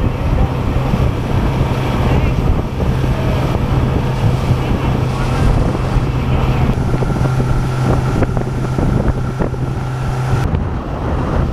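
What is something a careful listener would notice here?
A motorboat engine hums steadily.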